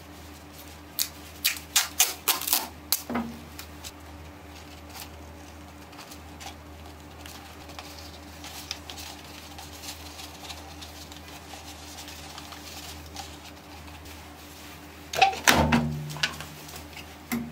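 Tape is pulled off a roll with a sharp tearing sound.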